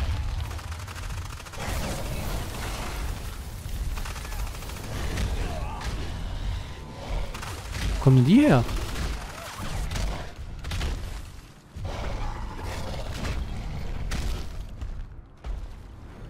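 Heavy footsteps thud on the ground.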